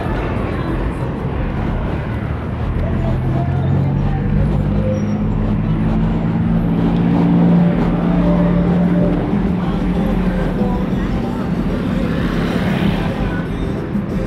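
Traffic rumbles past on a nearby road.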